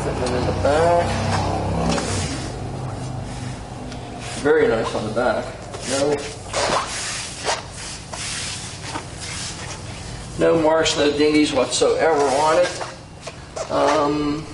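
A middle-aged man talks calmly and clearly into a close microphone.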